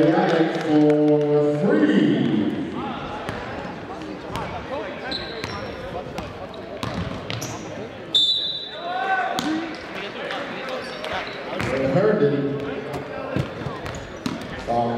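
Spectators call out and cheer in an echoing gym.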